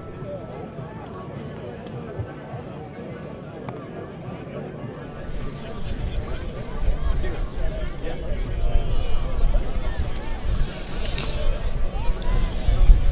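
A distant crowd of spectators chatters and cheers outdoors, growing louder.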